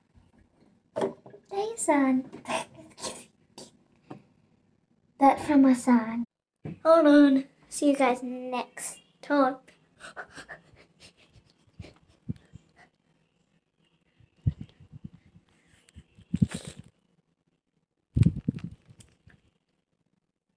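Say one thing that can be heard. A young girl talks and laughs close by, with animation.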